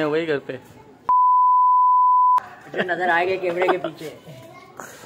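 A young man speaks casually close by.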